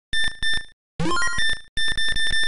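A quick electronic jingle rises in pitch.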